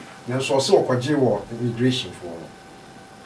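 A middle-aged man speaks briefly, close to a microphone.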